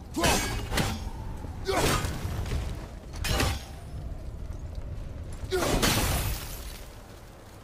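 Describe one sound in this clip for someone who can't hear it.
A heavy axe strikes metal with loud, ringing clangs.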